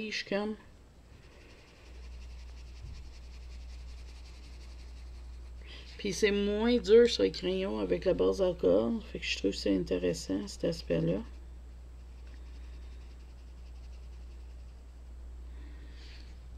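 A pencil scratches softly across paper.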